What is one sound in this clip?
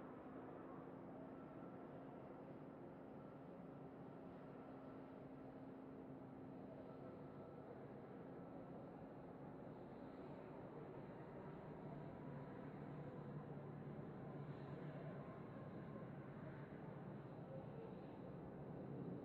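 Wind rushes loudly past the car.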